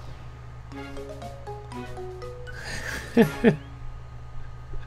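A short cheerful game jingle plays.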